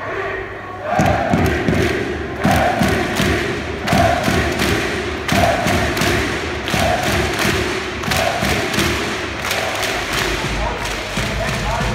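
A drum pounds in a steady rhythm.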